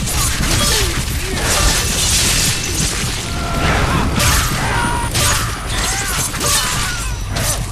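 A blade slashes through the air.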